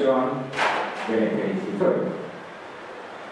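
An elderly man speaks calmly into a microphone over loudspeakers in a hall.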